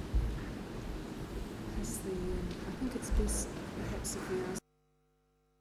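A man speaks over a microphone in a large room.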